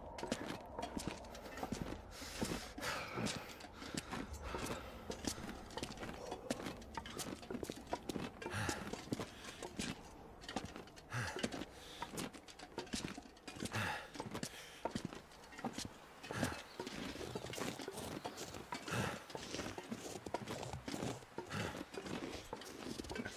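Footsteps crunch through snow at a steady walking pace.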